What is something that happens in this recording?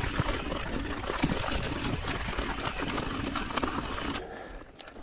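Bicycle tyres rattle and crunch over a rocky dirt trail.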